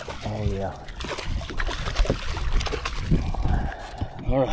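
Water splashes as a net scoops a fish.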